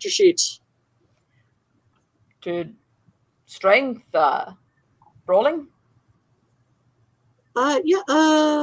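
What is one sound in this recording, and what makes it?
A woman speaks expressively over an online call, in short bursts with pauses.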